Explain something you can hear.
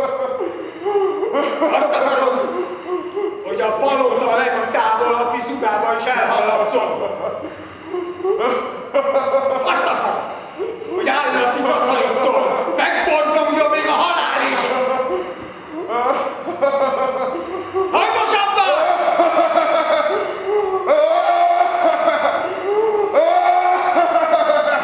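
A woman sings in a large echoing hall.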